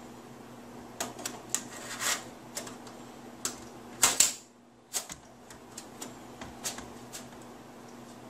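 A drive clicks and scrapes as it slides into a metal drive bay.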